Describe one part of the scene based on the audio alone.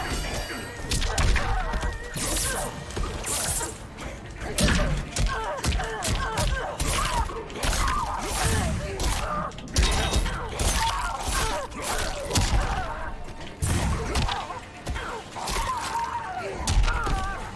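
Punches and kicks thud and crack in quick bursts.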